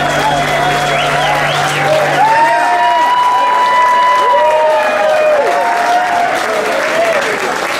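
Electric guitars play bending, sustained lead notes.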